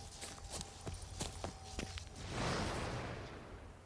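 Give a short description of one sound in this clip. Footsteps tread softly on grass.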